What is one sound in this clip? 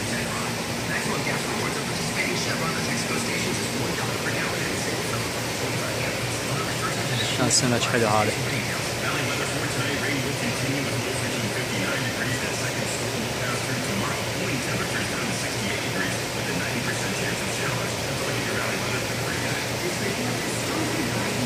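Water trickles and bubbles in aquarium tanks.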